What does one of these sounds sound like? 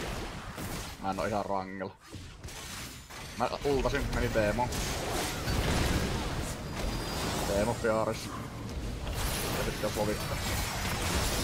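A man speaks with animation into a close microphone.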